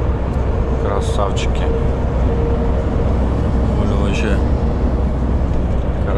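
A passing truck roars by close alongside.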